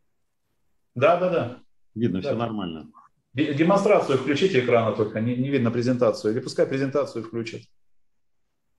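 Another middle-aged man speaks calmly into a microphone, heard over an online call.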